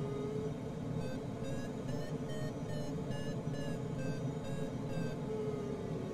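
A glider's instrument beeps in quick, rising pulses.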